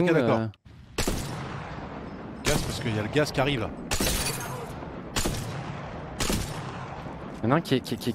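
Rifle shots boom, each with a long echoing tail.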